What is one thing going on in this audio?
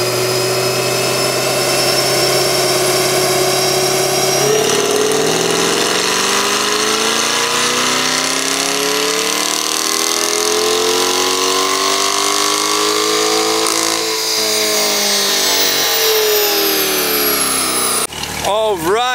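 A powerful car engine roars loudly, climbing and then falling in pitch.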